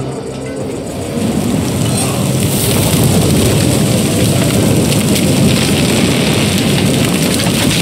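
A large fire roars and crackles, growing louder.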